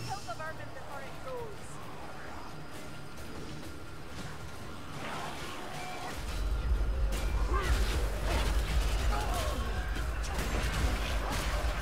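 Weapons strike enemies with hard thuds in a video game.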